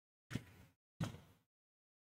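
A ball bounces on a hard court floor.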